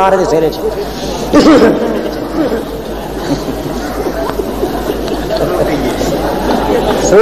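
A middle-aged man speaks forcefully into a microphone, heard through a loudspeaker with echo.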